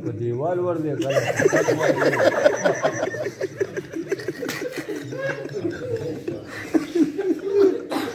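Several men chatter and laugh nearby.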